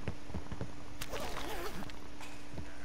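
A rifle rattles as it is picked up.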